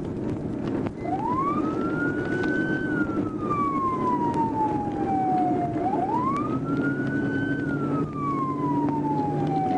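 A siren wails, rising and falling slowly.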